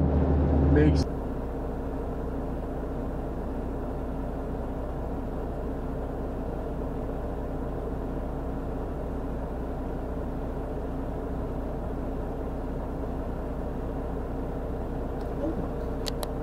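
A car engine idles quietly.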